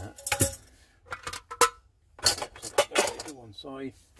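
Metal cookware clinks and rattles as it is handled.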